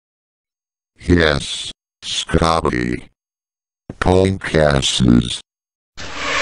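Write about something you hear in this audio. A man talks in a cheerful, goofy voice.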